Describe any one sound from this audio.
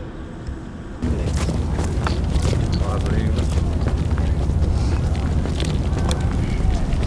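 A wheelchair rolls and rattles over pavement.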